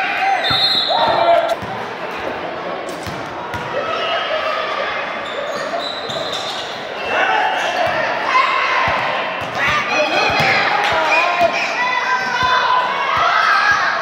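Young players shout and call out in a large echoing gym.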